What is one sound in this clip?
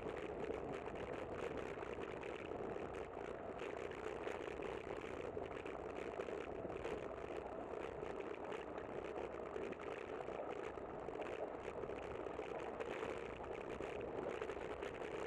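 Strong wind buffets and rumbles steadily outdoors.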